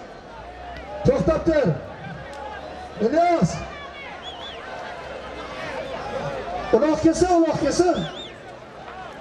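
Men shout loudly nearby.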